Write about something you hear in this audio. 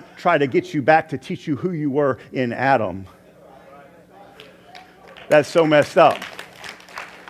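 A middle-aged man speaks with animation into a microphone in a large echoing hall.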